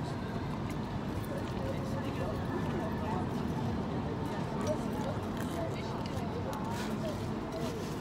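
A man chews food close by.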